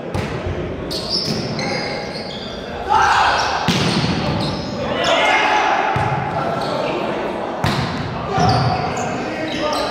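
Players call out and shout across an echoing gym.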